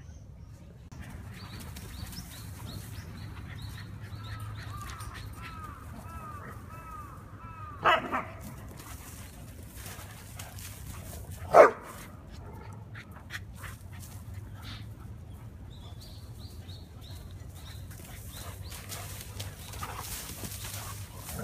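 Dogs run and scuffle through dry leaves, rustling them.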